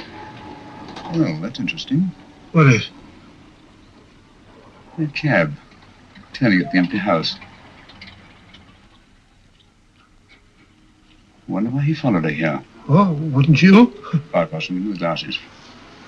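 A middle-aged man speaks in a low, hurried voice close by.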